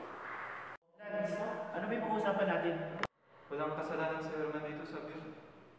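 A young man speaks calmly up close.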